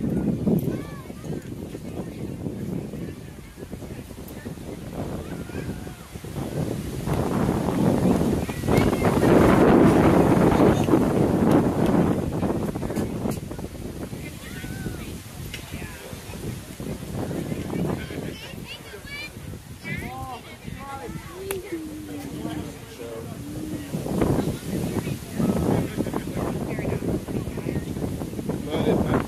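Children and adults chatter and shout nearby outdoors.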